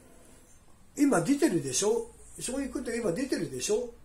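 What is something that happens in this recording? A middle-aged man talks on a phone, close by, with animation.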